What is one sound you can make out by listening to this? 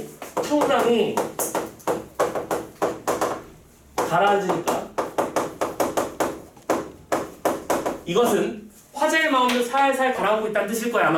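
A man speaks calmly, as if lecturing.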